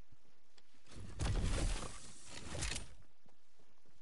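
Building pieces clatter and thud as they snap into place.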